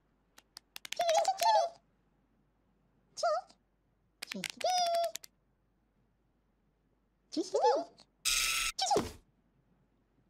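Small cartoon chicks cheep in high, squeaky chirps.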